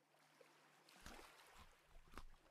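Gravel crunches as a block is dug out and breaks apart.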